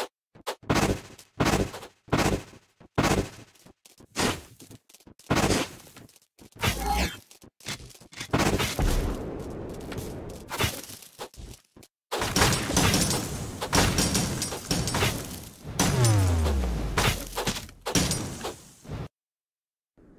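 Game sound effects of blasts and hits burst again and again.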